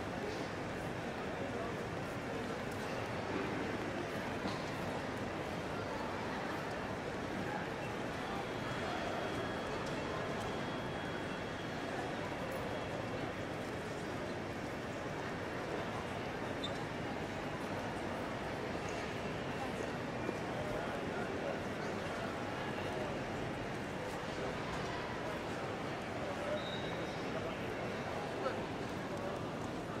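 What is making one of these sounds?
A crowd murmurs softly in a large echoing hall.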